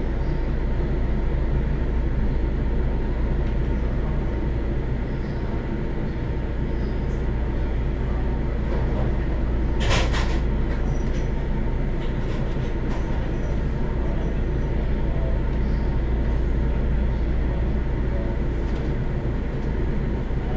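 A train's motors hum steadily.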